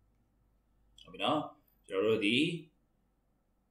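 A man speaks briefly and calmly through a microphone.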